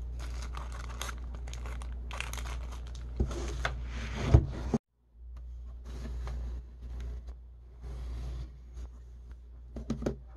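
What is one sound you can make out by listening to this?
Cardboard boxes rustle and tap as hands handle them.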